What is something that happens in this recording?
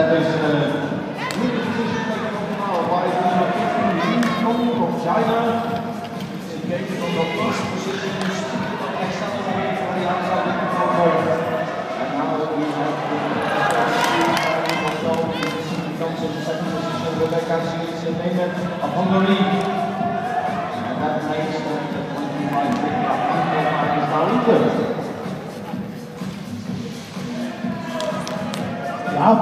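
Children talk and chatter close by in a large echoing hall.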